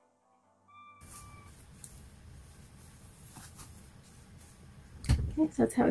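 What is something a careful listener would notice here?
Fabric rustles softly.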